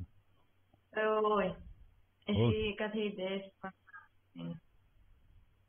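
A young woman speaks over an online call.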